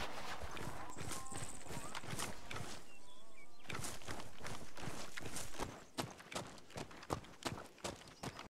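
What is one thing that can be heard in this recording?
Footsteps crunch on sand and gravel at a steady walking pace.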